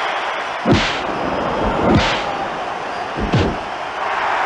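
Heavy thuds of bodies hitting a wrestling mat ring out several times.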